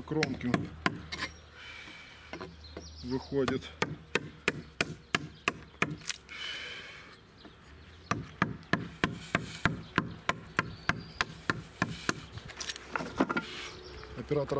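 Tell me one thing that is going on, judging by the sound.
A wooden mallet taps a chisel into wood in quick, sharp knocks.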